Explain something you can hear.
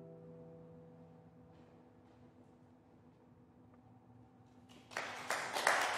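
A classical guitar plays soft notes that ring out and fade.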